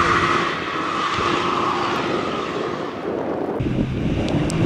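An off-road buggy engine drones in the distance.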